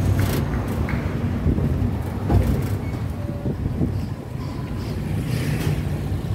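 A vehicle engine rumbles steadily close by as it drives along a street.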